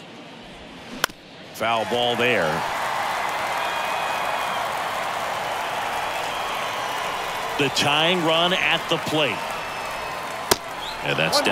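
A baseball pops into a catcher's mitt.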